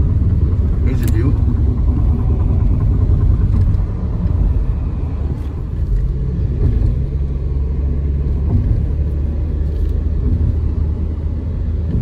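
A car engine hums steadily with low road rumble from inside the car.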